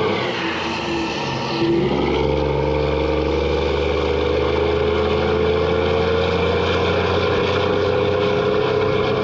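A heavy diesel engine rumbles loudly close by.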